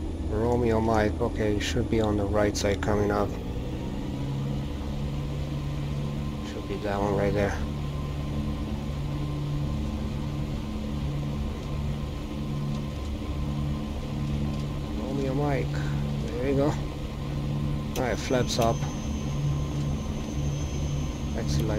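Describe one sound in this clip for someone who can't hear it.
A small plane's engine drones steadily with a low hum.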